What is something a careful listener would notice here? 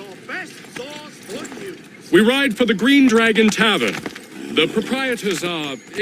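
Horse hooves clop on cobblestones.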